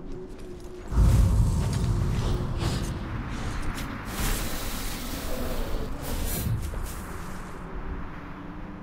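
A loud whooshing rush sweeps through.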